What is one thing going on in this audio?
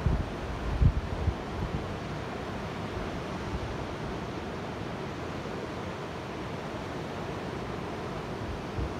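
Wind gusts against the microphone outdoors.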